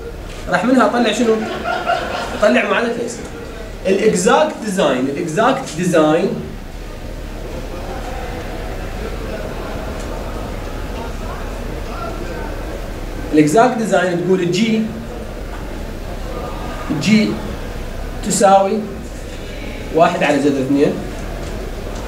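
A middle-aged man lectures calmly, with pauses.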